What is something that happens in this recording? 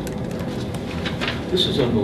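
A woman types on a laptop keyboard nearby.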